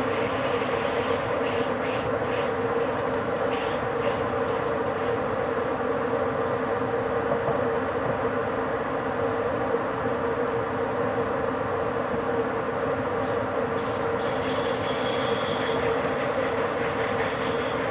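A train's electric motors hum at a steady pitch.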